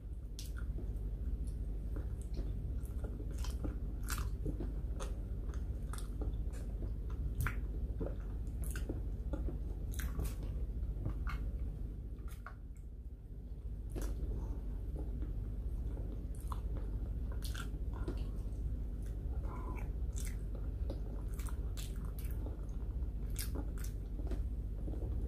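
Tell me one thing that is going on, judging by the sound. A woman chews food noisily close to a microphone.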